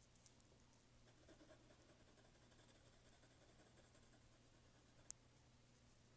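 A brush softly swishes on paper.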